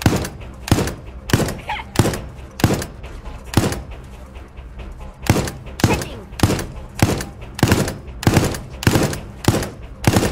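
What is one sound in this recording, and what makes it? A machine gun fires repeated single shots at a steady pace.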